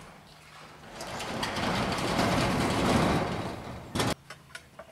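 A roll-up door rattles as it slides shut.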